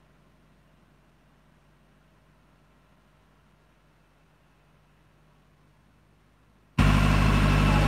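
A diesel generator hums steadily.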